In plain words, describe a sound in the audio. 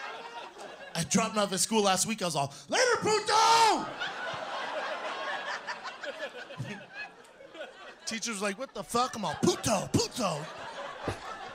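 A man speaks with animation into a microphone before an audience.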